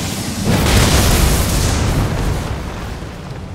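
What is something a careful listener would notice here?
A magic blast roars and crackles.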